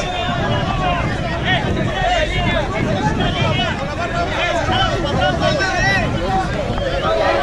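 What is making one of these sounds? A large crowd of men and women chatters and shouts outdoors.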